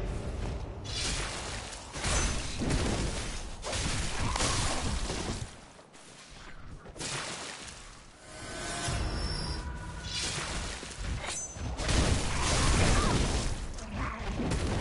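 Blades slash and strike flesh with heavy thuds.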